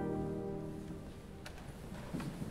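A pipe organ chord rings out and fades away in an echoing room.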